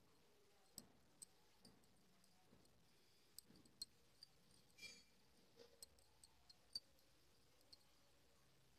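A metal hook clicks softly against a thin bangle.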